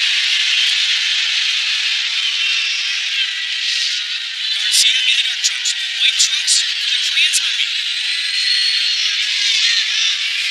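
A large crowd murmurs and shouts steadily in a big echoing arena.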